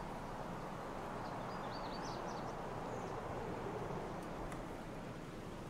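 Wind blows steadily through tall grass and trees.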